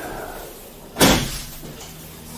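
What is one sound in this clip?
A cable car door bangs open with a sharp clunk.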